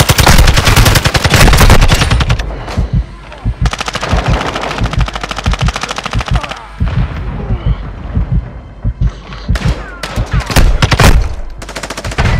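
Rapid gunfire rattles in bursts from a game.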